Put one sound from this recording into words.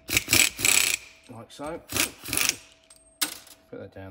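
A small rotary tool whirs close by.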